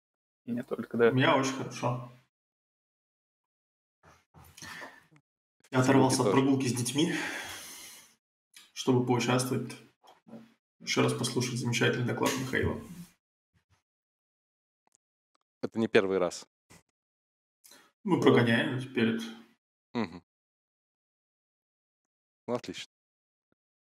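A young man speaks calmly over an online call, in short bursts with pauses.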